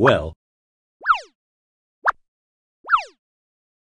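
A short electronic chime sounds as a puzzle piece snaps into place.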